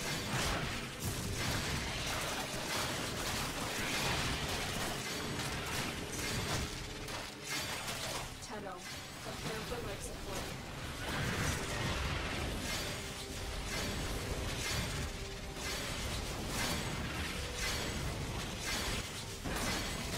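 Blades slash and clash rapidly.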